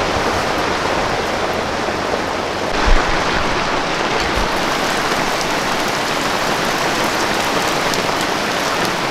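Heavy rain pours steadily on a tent.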